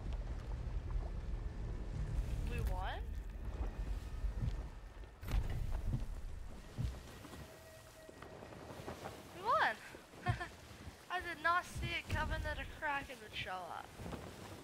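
Rough sea waves roll and splash loudly.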